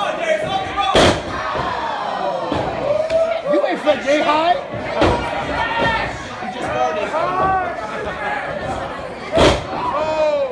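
A wrestler slams heavily onto a wrestling ring mat.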